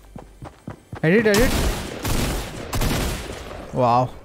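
Rapid gunshots fire at close range.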